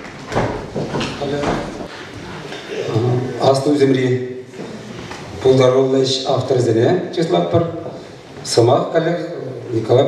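A man speaks calmly into a microphone over loudspeakers in an echoing hall.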